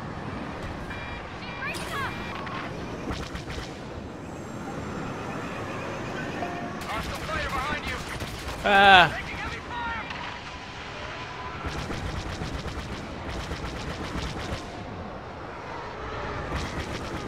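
A starfighter's engine roars steadily.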